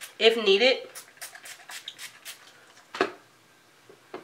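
A hairspray can hisses in short bursts.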